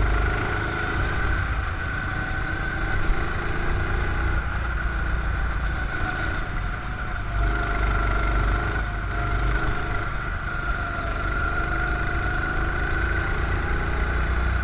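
A go-kart engine whines steadily close by, rising and falling as the kart speeds up and slows into the bends.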